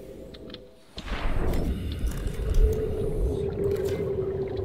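Water rushes and bubbles loudly.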